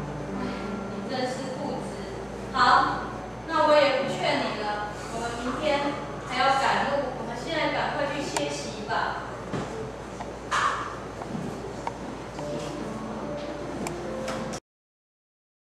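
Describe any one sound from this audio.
Women speak on a stage, heard from a distance in an echoing hall.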